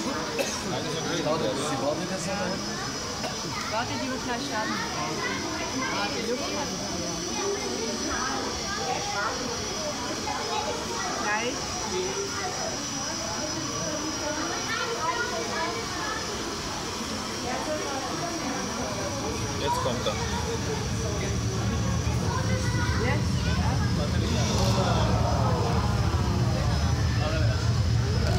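People chatter nearby in a large, echoing hall.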